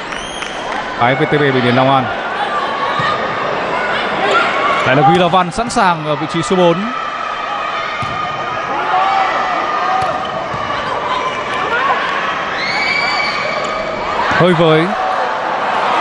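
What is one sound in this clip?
Young women players shout on the court.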